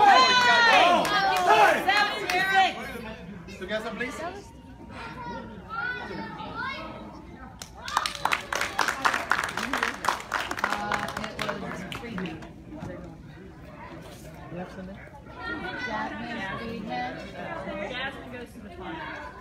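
Several people cheer and shout from close by.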